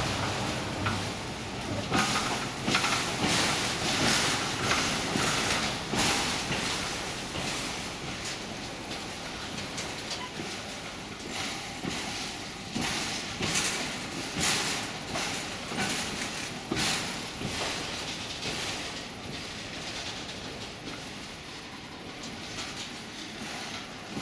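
A freight train rumbles past close by, its wheels clattering over the rail joints.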